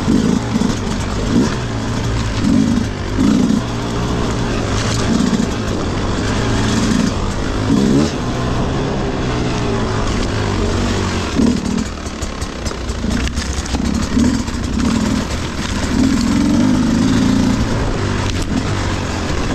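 A dirt bike engine chugs and revs up and down close by.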